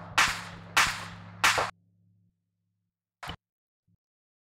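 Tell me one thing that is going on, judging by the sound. Game menu sounds click sharply a few times.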